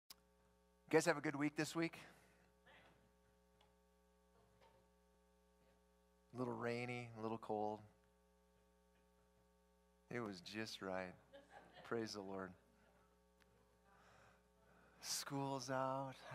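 A middle-aged man speaks calmly through a microphone in a large room, pausing between phrases.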